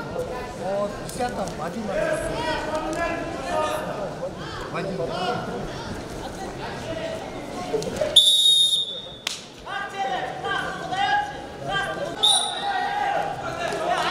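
A large crowd shouts and cheers in a big echoing hall.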